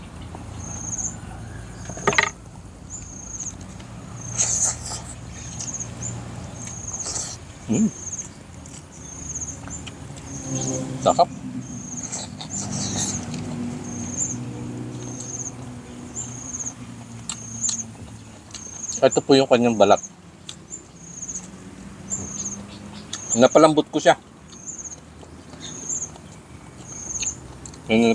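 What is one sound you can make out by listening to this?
A man chews and smacks his lips loudly, close up.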